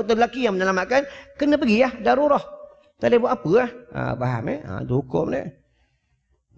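A middle-aged man speaks with animation through a microphone.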